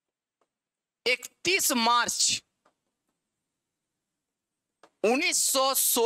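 A young man speaks clearly and emphatically into a microphone.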